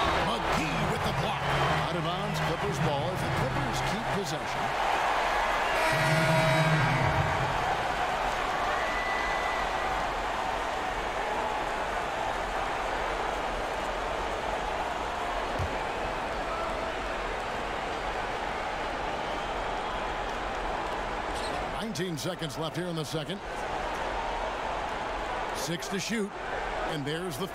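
A large crowd murmurs and cheers in a big echoing arena.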